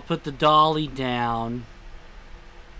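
A man calls out nearby.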